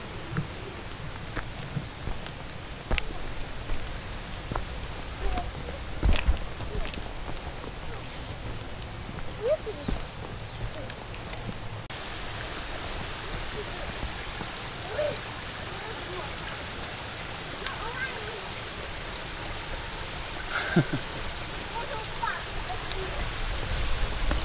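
Footsteps crunch and scuff on a dirt trail.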